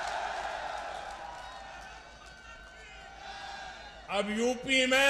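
A large crowd cheers and chants outdoors.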